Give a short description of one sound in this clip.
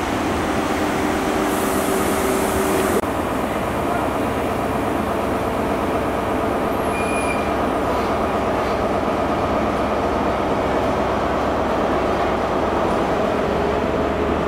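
A diesel train engine idles with a loud, steady rumble.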